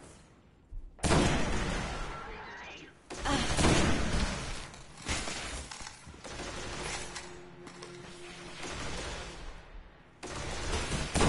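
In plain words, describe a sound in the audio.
Heavy rifle shots boom one after another.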